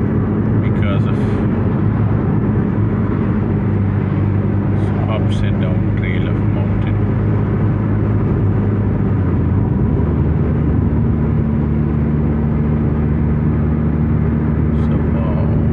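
A car engine hums steadily from inside the car, its pitch shifting once as the gear changes.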